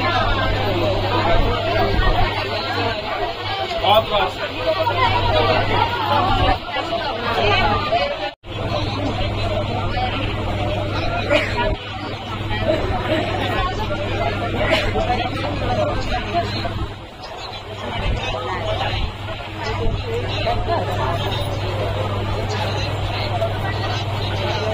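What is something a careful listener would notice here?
A train rumbles along steadily.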